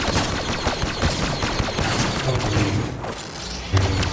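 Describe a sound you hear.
A lightsaber hums and swings.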